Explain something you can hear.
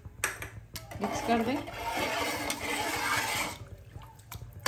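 Water pours and splashes into a metal pot.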